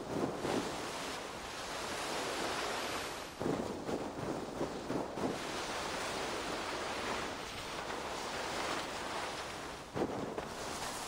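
Snow hisses steadily as a body slides down a slope.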